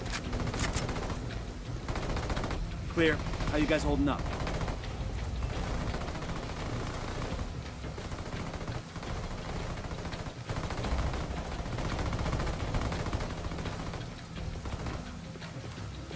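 Footsteps clang on a metal roof.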